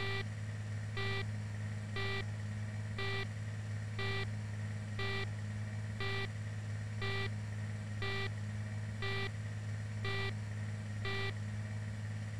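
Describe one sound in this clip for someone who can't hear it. A warning alarm beeps once a second.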